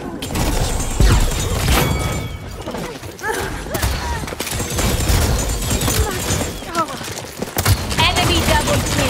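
A weapon fires rapid energy blasts with loud whooshing bursts.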